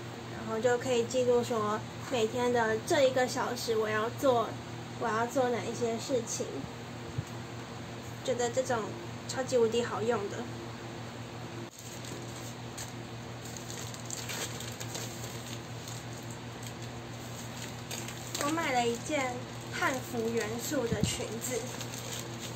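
A young woman talks calmly and close by.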